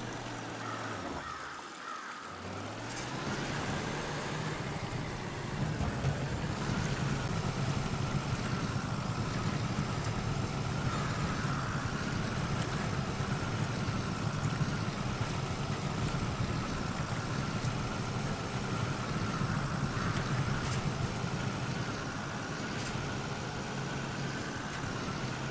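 A truck engine rumbles and strains as the truck drives through mud.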